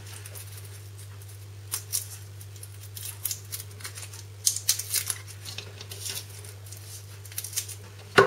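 Papery garlic skin crackles as fingers peel it.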